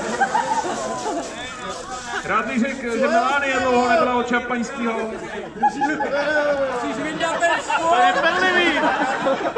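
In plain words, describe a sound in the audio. Champagne sprays out of bottles with a fizzing hiss.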